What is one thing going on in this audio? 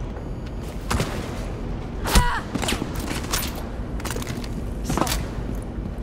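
A gun fires sharp, single shots.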